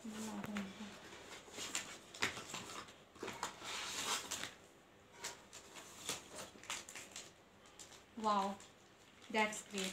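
Paper and cardboard rustle and crinkle close by.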